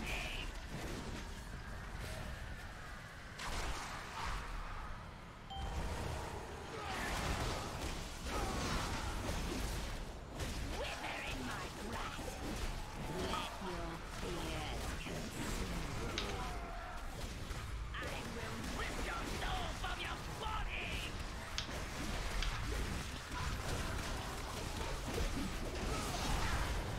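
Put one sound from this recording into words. Magic spells burst and crackle in a busy fight.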